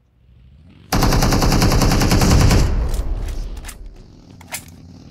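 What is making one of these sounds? A grenade explodes with a loud blast that rumbles away.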